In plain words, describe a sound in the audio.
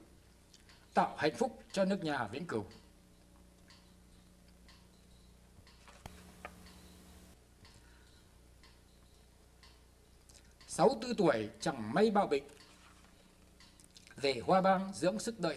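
A man reads aloud slowly into a microphone, with long pauses.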